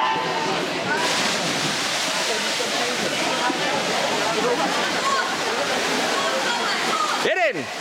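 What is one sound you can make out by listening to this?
Swimmers dive in and splash through the water.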